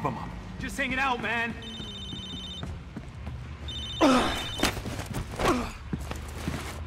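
A man cries out in alarm.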